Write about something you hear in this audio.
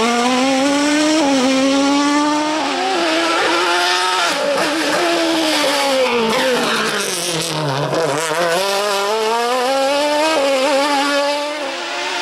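A race car engine screams loudly, revving up and down as it shifts gears.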